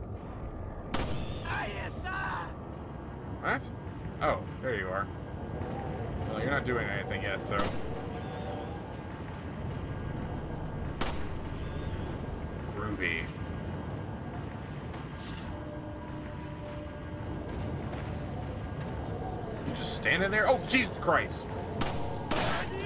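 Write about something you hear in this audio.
A pistol fires sharp single shots.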